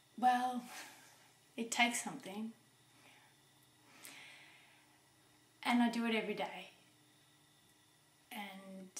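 A woman speaks calmly and close by, in short phrases with pauses.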